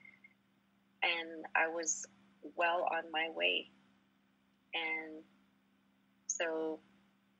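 A woman speaks calmly and clearly into a microphone, in short phrases.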